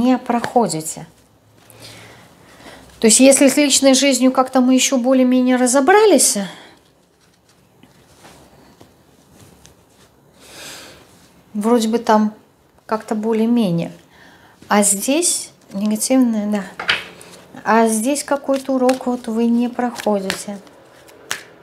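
A woman speaks calmly and closely to a microphone.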